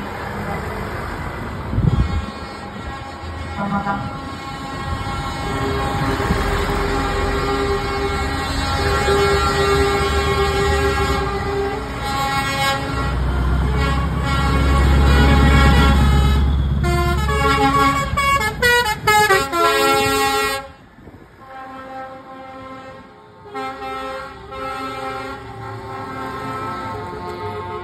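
Heavy truck engines rumble loudly as trucks drive past one after another.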